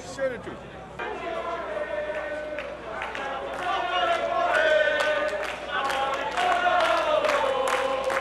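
A crowd chants and sings together outdoors.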